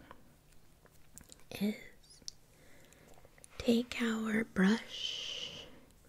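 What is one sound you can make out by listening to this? Foil crinkles between fingers close to a microphone.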